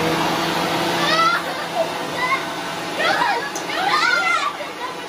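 A young boy shouts excitedly nearby.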